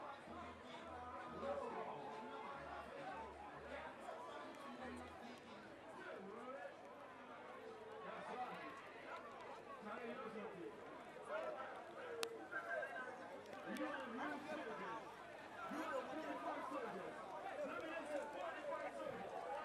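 A crowd of young men and women chatters and shouts outdoors.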